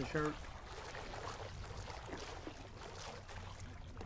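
A fish splashes and thrashes in water.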